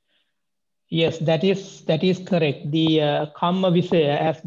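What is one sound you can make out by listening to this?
A man chants in a low, steady voice.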